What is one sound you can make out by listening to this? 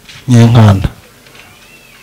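A man speaks loudly through a microphone, heard over a loudspeaker.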